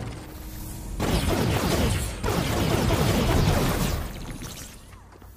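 A crackling energy blast bursts loudly.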